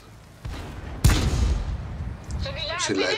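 A tank cannon fires with a loud boom that rumbles away.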